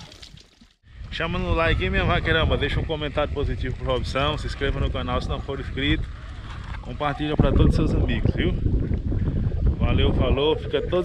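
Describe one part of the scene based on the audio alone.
A man speaks calmly and close to the microphone.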